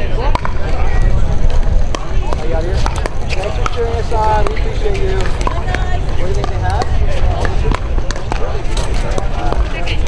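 Pickleball paddles strike a plastic ball outdoors in a rally.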